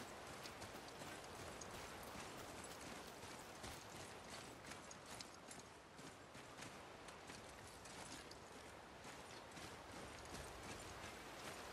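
Heavy footsteps thud on stone ground.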